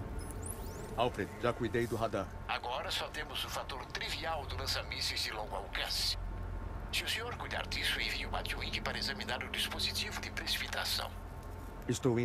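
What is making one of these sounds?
An elderly man speaks calmly over a call.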